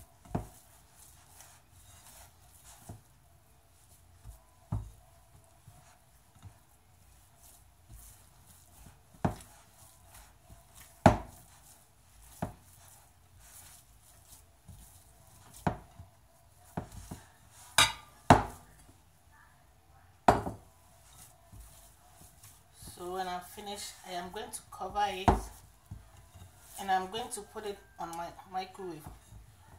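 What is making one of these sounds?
Hands knead and slap soft dough in a glass bowl, with occasional knocks against the glass.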